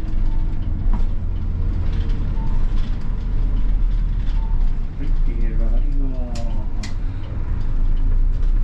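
A bus rattles and creaks as it drives over the road.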